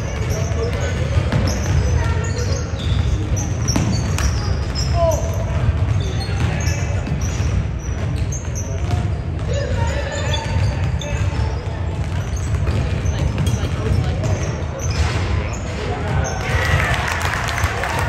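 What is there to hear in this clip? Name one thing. Sneakers squeak sharply on a gym floor, echoing in a large hall.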